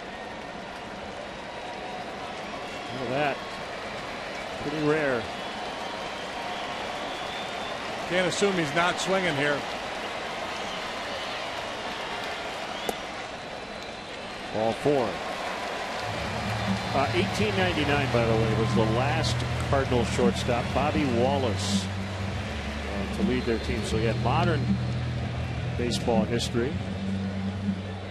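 A large crowd murmurs steadily in a big open stadium.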